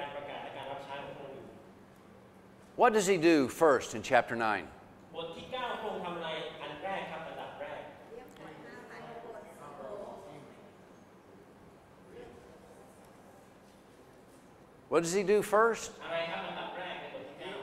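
A middle-aged man speaks calmly into a microphone in an echoing hall.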